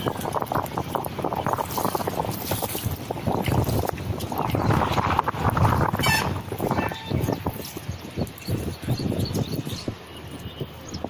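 Wind buffets loudly outdoors over open water.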